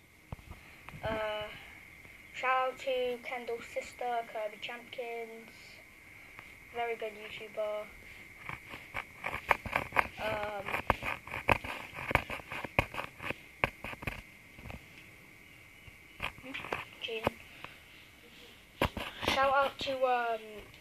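A young boy talks casually, close to the microphone.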